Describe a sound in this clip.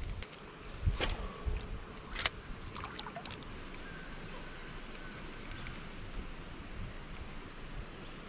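A fishing reel clicks and whirs as it is cranked.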